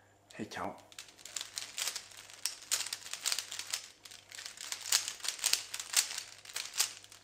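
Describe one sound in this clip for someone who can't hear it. A puzzle cube clicks and clacks as fingers twist it quickly.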